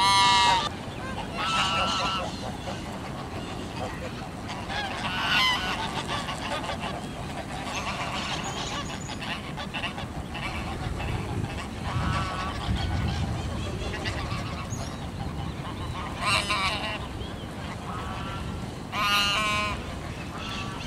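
A flock of domestic geese honks.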